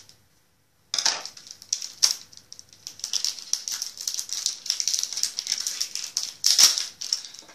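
Foil wrapping crinkles and rustles as a boy tears it open.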